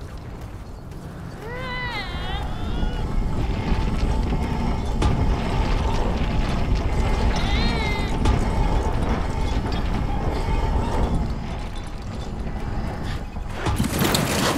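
A heavy wooden cage rumbles and scrapes slowly along rails.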